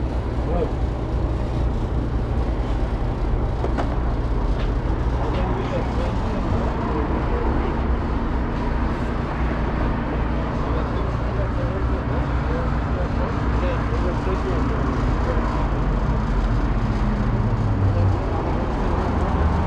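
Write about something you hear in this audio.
Wind blows against a microphone outdoors.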